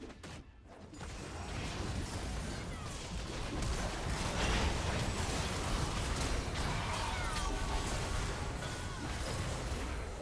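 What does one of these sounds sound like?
Spell blasts and explosions crash during a fantasy game battle.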